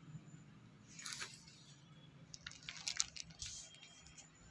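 A sheet of paper rustles as it is lifted.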